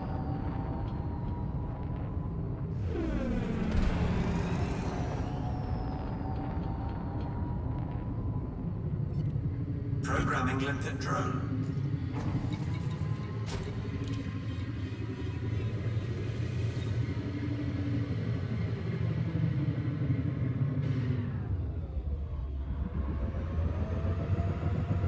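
A spaceship engine hums steadily and low.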